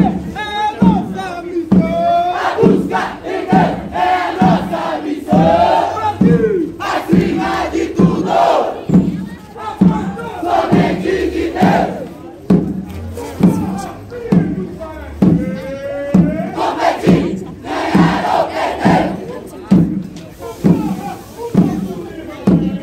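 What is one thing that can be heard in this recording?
Snare drums rattle quickly.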